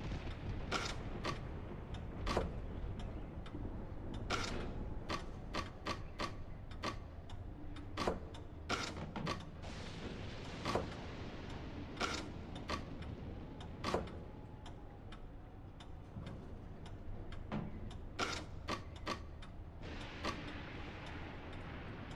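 Wooden blocks click and knock as they slide and turn into place.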